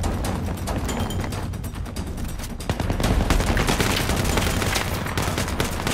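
Rapid gunfire cracks and echoes nearby.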